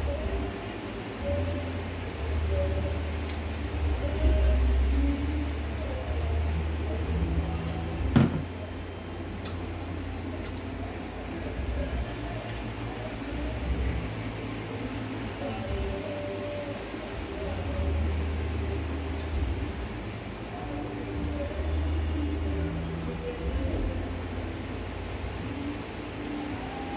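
A young woman slurps soup from a bowl close by.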